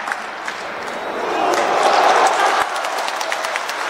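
A stadium crowd roars loudly and briefly.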